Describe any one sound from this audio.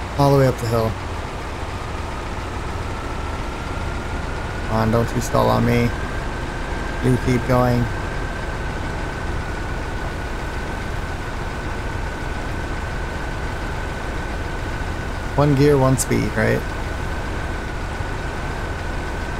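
A heavy truck engine rumbles steadily with a faint whine.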